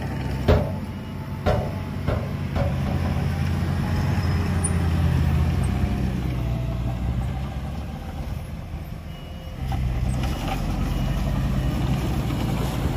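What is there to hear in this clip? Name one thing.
A heavy truck's diesel engine rumbles and labours as the truck reverses.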